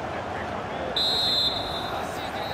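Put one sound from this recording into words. A referee's whistle blows a short, shrill blast.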